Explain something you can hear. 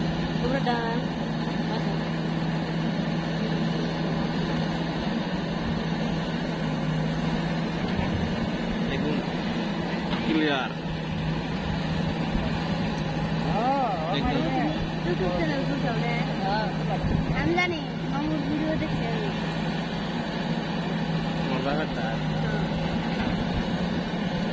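A backhoe's diesel engine rumbles steadily up close.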